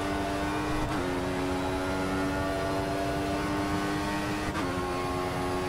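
A racing car shifts up a gear, the engine note dropping sharply twice.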